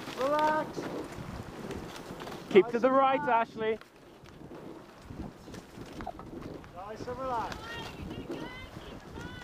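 Bicycle tyres roll steadily over a gravel path.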